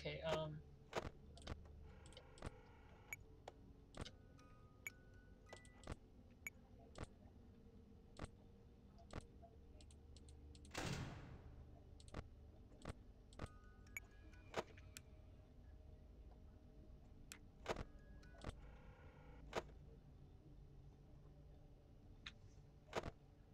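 Sharp electronic clicks come again and again.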